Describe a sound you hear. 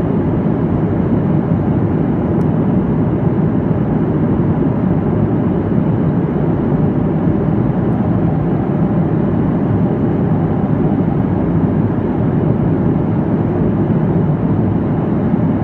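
Jet engines roar steadily inside an airliner cabin in flight.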